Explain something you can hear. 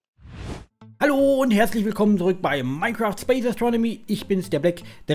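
A young man talks with animation through a close microphone.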